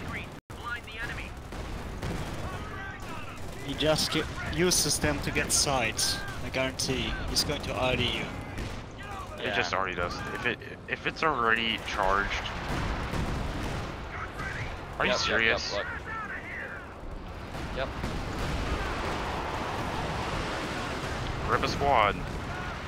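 Shells explode with deep booms.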